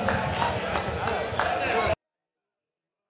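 A small crowd of spectators shouts and cheers outdoors.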